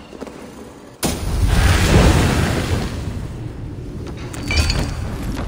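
A loud blast bursts and rumbles away.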